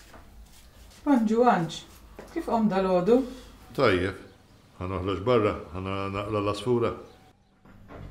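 An older woman speaks quietly and calmly nearby.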